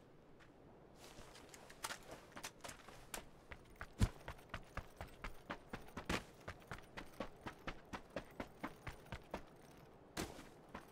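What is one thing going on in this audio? Footsteps run quickly over dry, sandy ground.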